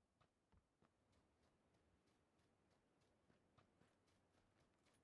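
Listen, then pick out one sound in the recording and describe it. Footsteps swish quickly through tall grass.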